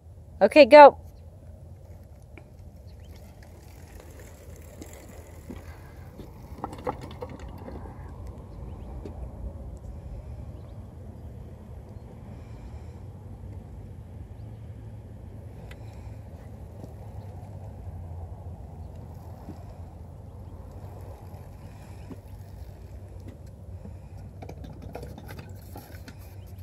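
Small bicycle tyres roll over packed dirt.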